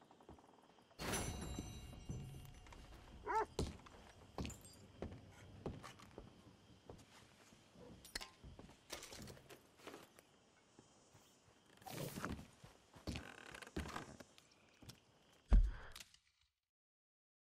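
Boots thud on a wooden floor.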